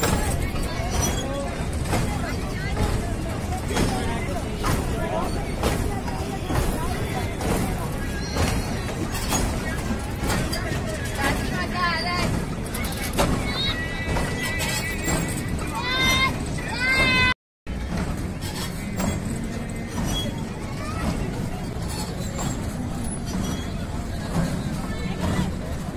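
A carousel rumbles steadily as it turns.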